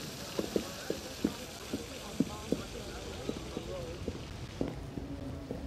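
Quick footsteps run over stone paving.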